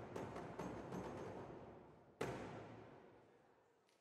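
A large drum is struck with loud booming beats that ring out in an echoing hall.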